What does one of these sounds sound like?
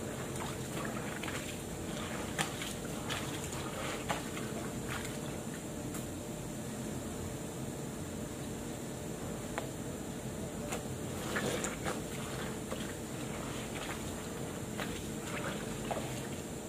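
Water splashes as clothes are scrubbed.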